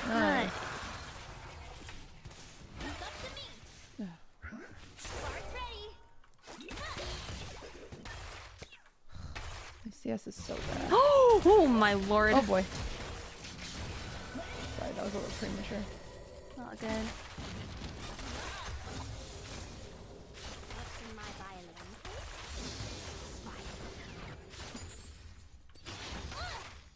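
A young woman talks into a nearby microphone.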